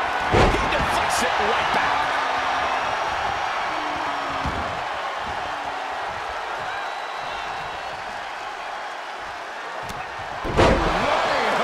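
Bodies thud heavily onto a ring mat.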